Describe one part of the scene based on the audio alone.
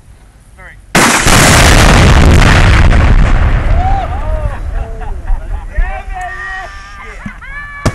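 A blast rumbles and echoes across open ground, slowly fading.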